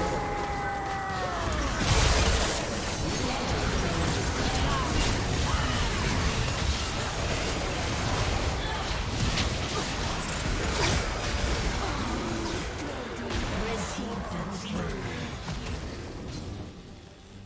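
Game spell effects crash and burst in quick succession.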